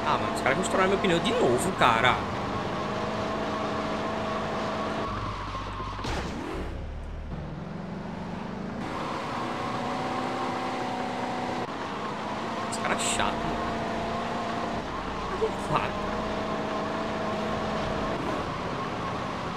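A car engine hums steadily as a car drives.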